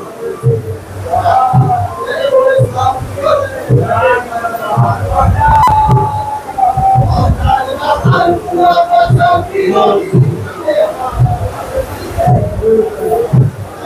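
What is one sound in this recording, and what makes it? A group of men chant together in a steady, sung rhythm, close by.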